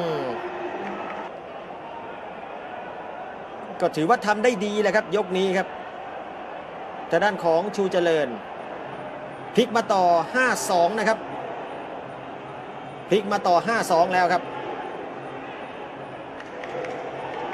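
A large crowd murmurs and cheers in a big echoing hall.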